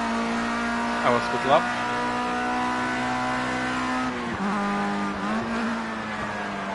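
A racing car engine drops in pitch and climbs again as the gears shift.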